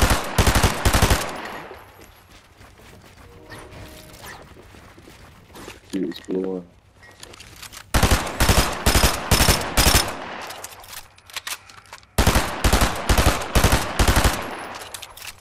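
Gunshots fire in rapid bursts, close and loud.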